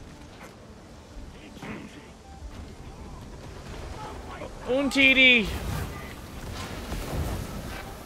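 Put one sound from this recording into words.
Guns fire in short bursts with low booms.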